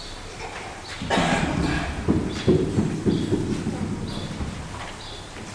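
A man chants in a large echoing hall.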